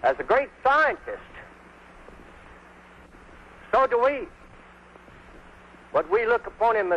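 An elderly man speaks in short bursts, close by.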